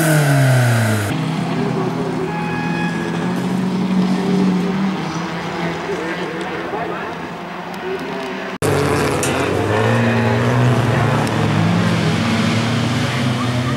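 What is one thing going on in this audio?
Rally car engines roar and rev loudly.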